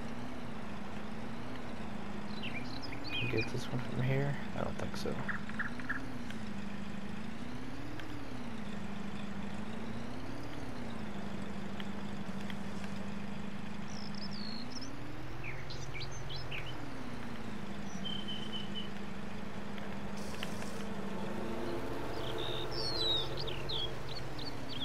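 A pickup truck engine hums and revs up and down as it drives.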